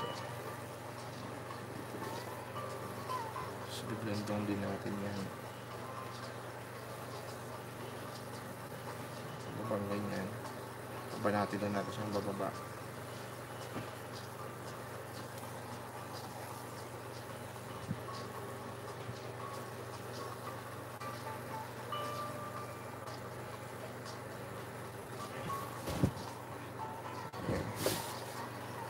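A brush dabs and scrapes softly on canvas.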